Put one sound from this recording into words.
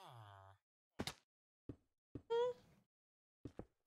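A block clicks softly into place.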